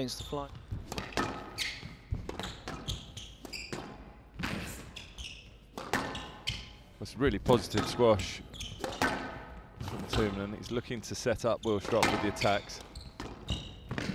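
Shoes squeak sharply on a hard court floor.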